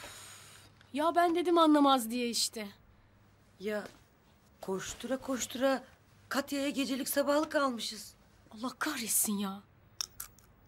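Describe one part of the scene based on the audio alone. A middle-aged woman speaks earnestly nearby.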